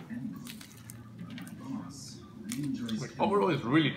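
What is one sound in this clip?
A young woman bites and chews crunchy food.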